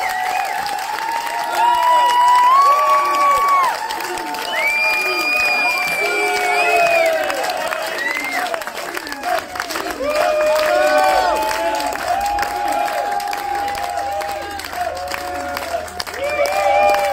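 A crowd cheers and whoops loudly in a large room.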